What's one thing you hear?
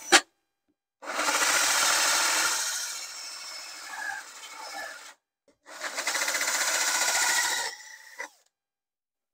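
A cordless drill whirs as it cuts through a wooden board.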